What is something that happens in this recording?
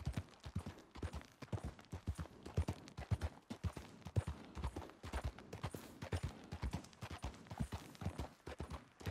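Horse hooves thud quickly and steadily on a dirt path.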